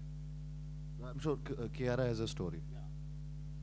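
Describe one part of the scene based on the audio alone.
A man speaks into a microphone with animation, heard through loudspeakers.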